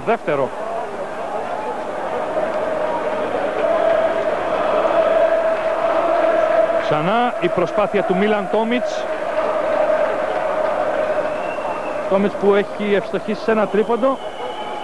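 A large crowd cheers and murmurs steadily in an echoing hall.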